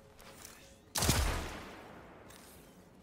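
A rifle fires a short burst of shots.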